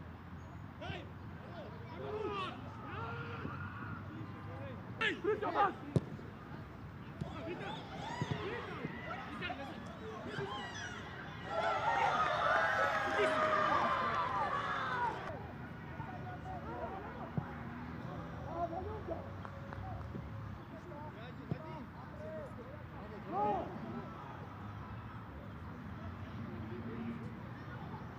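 Players shout to each other across an open pitch.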